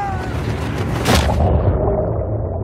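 A body plunges into the sea with a heavy splash.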